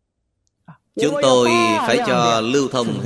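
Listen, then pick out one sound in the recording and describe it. An elderly man speaks calmly and warmly into a microphone.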